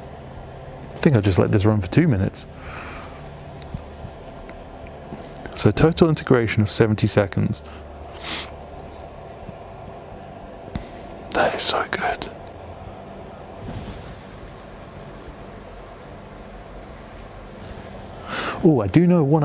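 A man talks calmly, close by, in short bursts with pauses.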